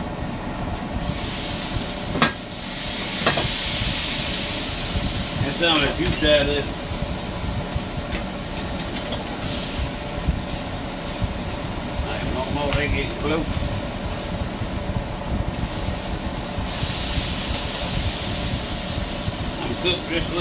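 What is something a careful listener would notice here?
Meat sizzles loudly in a hot frying pan.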